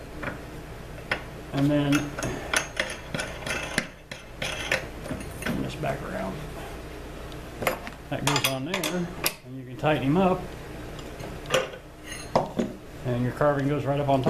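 Metal parts clink and knock together as they are fitted by hand.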